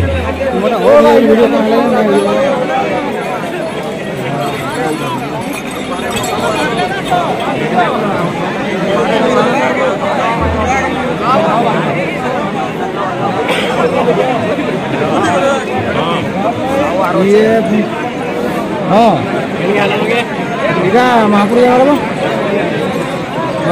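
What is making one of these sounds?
A large crowd of men talks and shouts loudly outdoors.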